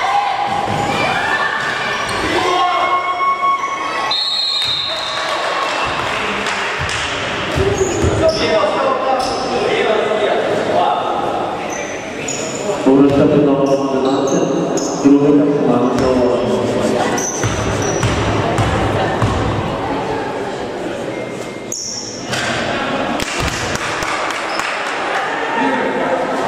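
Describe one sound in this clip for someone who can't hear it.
Spectators shout and cheer throughout a large echoing hall.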